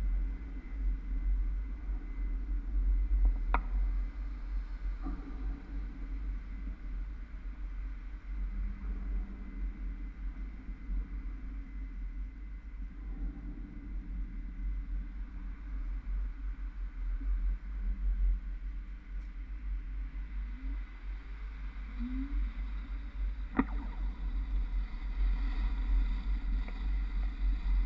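Traffic passes on the street nearby.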